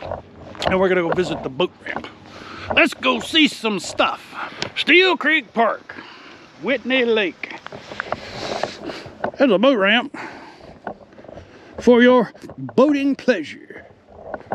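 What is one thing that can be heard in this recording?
A middle-aged man talks calmly and close up, outdoors.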